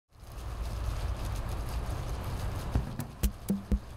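Water splashes steadily from a fountain.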